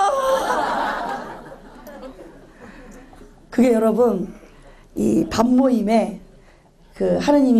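A middle-aged woman sings into a microphone, with her voice echoing around a large hall.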